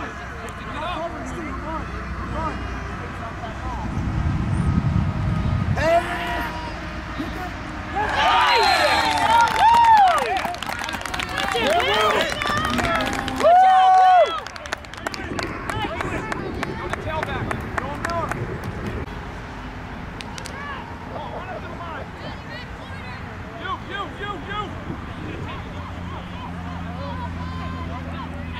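Young players shout to each other on a field.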